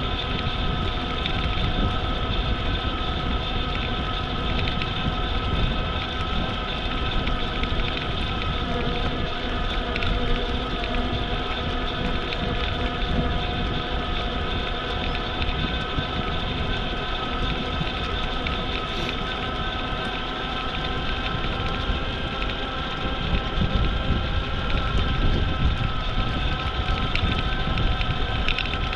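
An electric motor whines steadily throughout.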